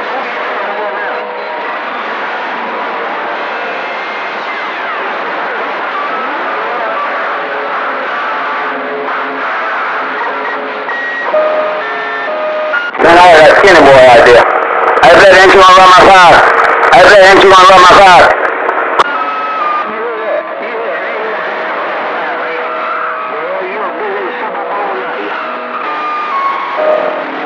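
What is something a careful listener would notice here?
A radio receiver hisses with static and faint whistling tones.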